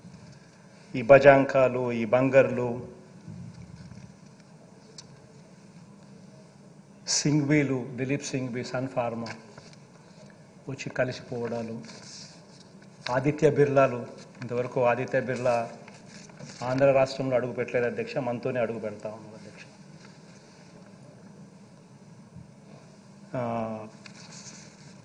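A man speaks with emphasis into a microphone in a large hall, pausing between phrases.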